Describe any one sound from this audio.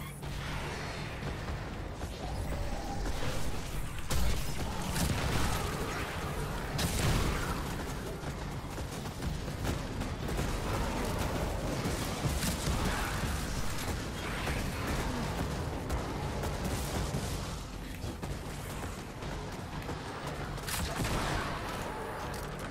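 Game guns fire in rapid bursts, with blasts and crackling effects.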